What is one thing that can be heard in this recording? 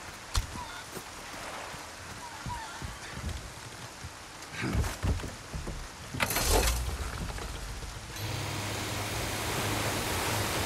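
Rain falls steadily on water.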